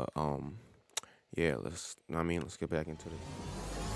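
A young man speaks quickly and with animation, close to a microphone.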